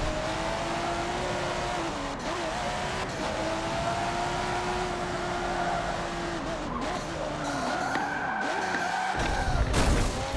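A sports car engine revs and whines as it races.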